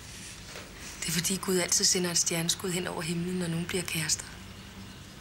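A young girl speaks cheerfully.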